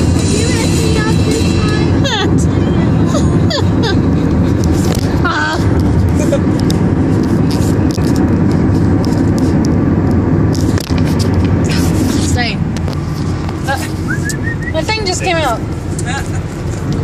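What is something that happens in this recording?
A woman laughs and talks cheerfully close by.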